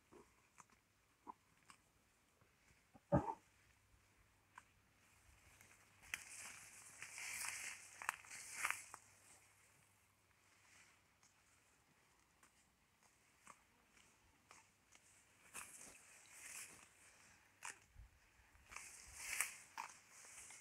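A cow tears and chews grass up close.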